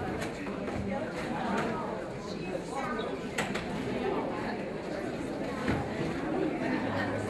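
A woman speaks into a microphone over a loudspeaker.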